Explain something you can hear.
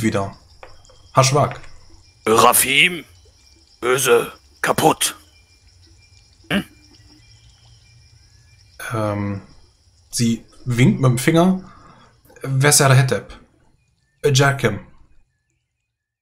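A man speaks calmly through a microphone in an online call, in short bursts with pauses.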